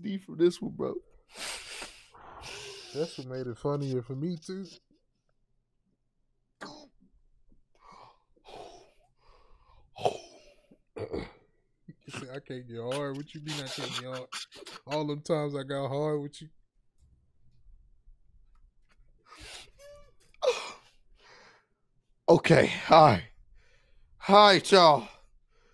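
A man laughs loudly into a close microphone.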